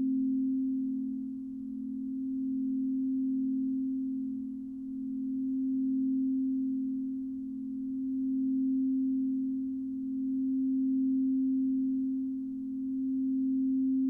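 A crystal singing bowl hums with a steady, low ringing tone that slowly swells and fades.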